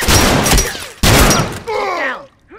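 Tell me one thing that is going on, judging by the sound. A shotgun fires loudly at close range.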